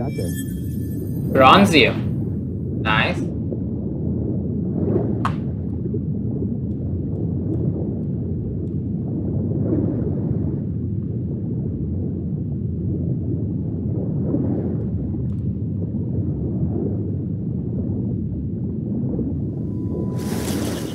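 A muffled underwater rumble drones steadily.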